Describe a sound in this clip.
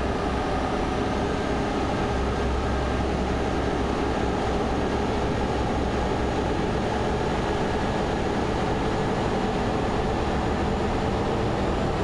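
A passing truck rumbles close by.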